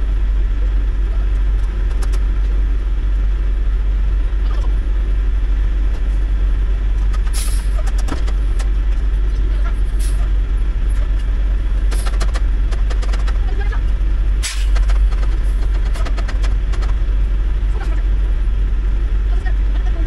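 A truck engine idles with a steady low rumble from inside the cab.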